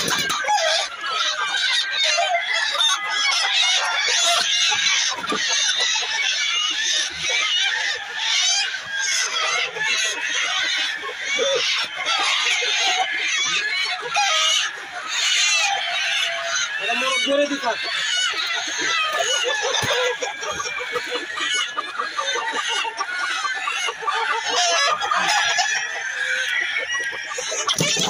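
Many chickens cluck and squawk close by.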